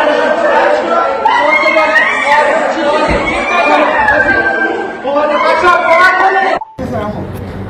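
A crowd of people shout and scream in a scuffle outdoors.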